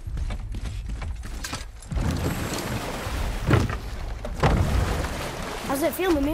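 Water laps and splashes against a small wooden boat.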